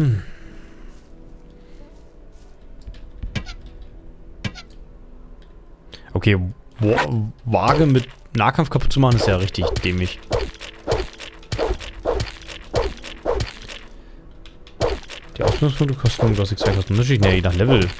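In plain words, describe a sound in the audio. A weapon swings and strikes with sharp hits.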